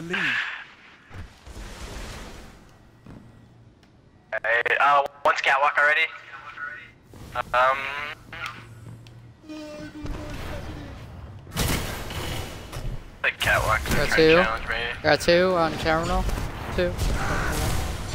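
Gunfire rattles from a video game.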